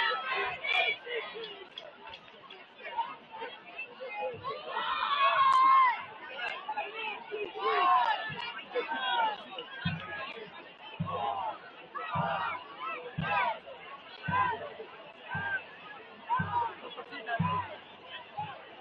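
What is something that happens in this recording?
A crowd cheers and shouts from the sidelines of an outdoor field.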